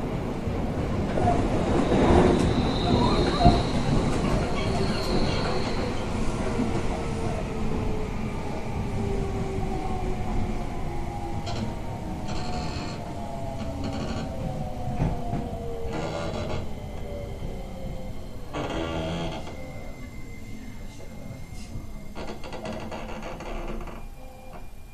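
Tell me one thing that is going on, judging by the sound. A train rumbles past close by.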